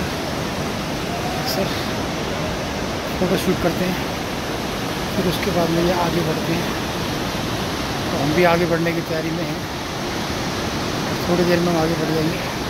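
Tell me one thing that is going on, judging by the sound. A fast river rushes loudly over rocks.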